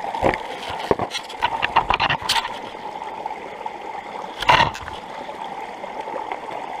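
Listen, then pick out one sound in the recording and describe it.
A shallow stream trickles and splashes over rocks close by.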